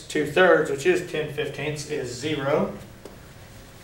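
A man speaks calmly, explaining nearby in a room.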